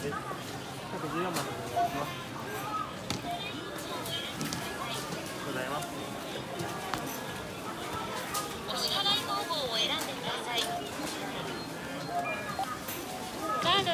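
Shoppers murmur and talk in the background.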